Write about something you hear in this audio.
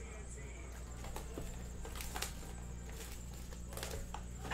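Plastic wrapping crinkles and tears.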